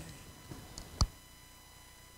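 A microphone thumps as it is handled.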